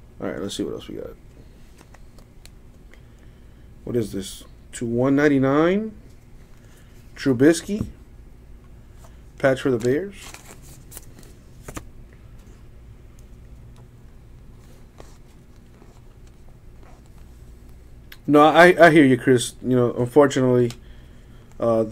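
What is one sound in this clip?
Trading cards rustle and slide against each other as hands shuffle through them.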